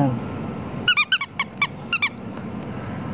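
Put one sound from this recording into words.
A rubber toy duck squeaks as a hand squeezes it.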